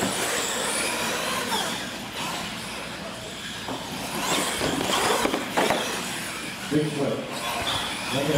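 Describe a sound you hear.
Plastic wheels thump and clatter over ramps.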